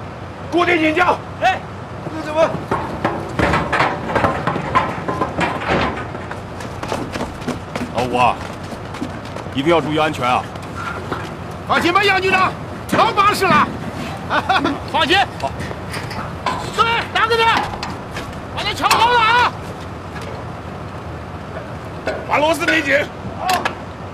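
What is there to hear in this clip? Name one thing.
A man shouts commands outdoors.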